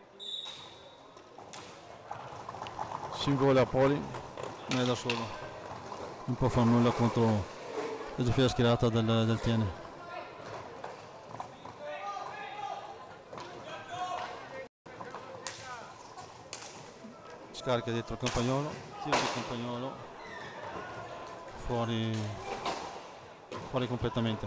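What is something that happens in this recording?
Hockey sticks clack against a ball.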